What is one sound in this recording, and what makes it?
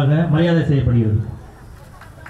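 A man speaks loudly through a microphone and loudspeakers.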